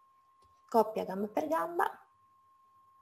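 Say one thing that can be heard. A young woman speaks calmly into a microphone, close by.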